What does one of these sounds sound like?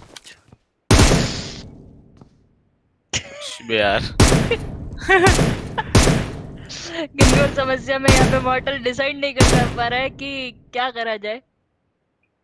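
Gunfire bursts out in loud, rapid shots.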